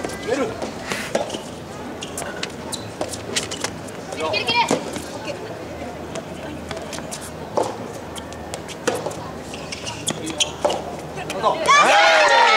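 Rackets strike a tennis ball back and forth.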